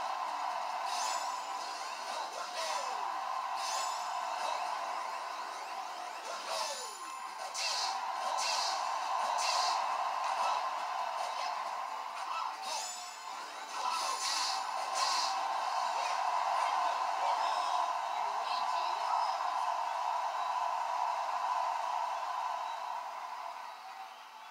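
Upbeat video game music plays through a television speaker.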